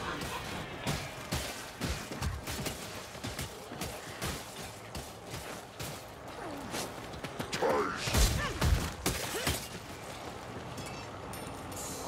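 Swords clash and slash against enemies with sharp metallic hits.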